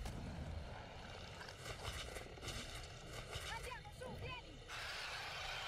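A monster growls and shrieks.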